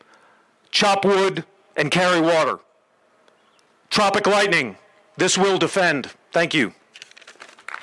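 A man speaks firmly into a microphone over a loudspeaker outdoors.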